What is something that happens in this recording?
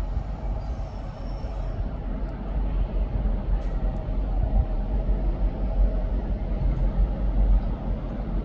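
A diesel locomotive rumbles as it approaches slowly along the tracks.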